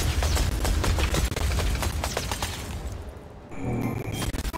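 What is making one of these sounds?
Icy magic blasts crash and crackle in rapid bursts.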